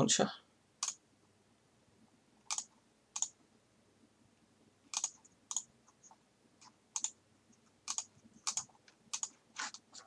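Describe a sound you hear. Short electronic clicks sound as upgrades are bought in a game.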